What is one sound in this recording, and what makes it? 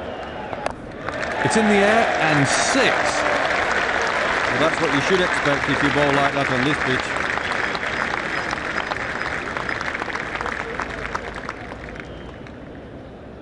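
A large crowd cheers loudly and then fades.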